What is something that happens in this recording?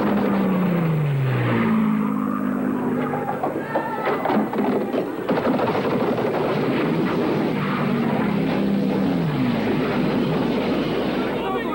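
Loud explosions boom one after another.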